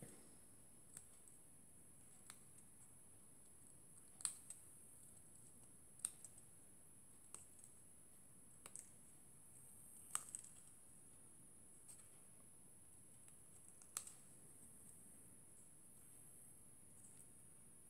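Small scissors snip through thin card.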